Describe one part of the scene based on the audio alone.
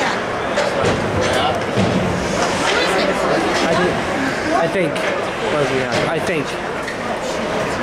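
Children and adults shout and call out across a large echoing rink.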